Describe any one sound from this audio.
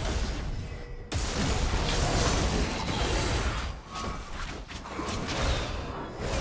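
Magic blasts and hits crackle and thump in a fast fight.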